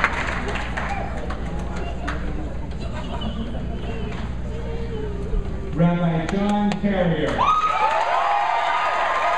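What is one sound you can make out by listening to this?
Men talk and greet each other close by.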